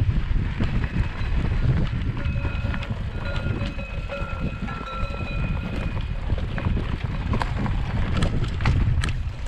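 Bicycle tyres roll and rattle over a dirt trail.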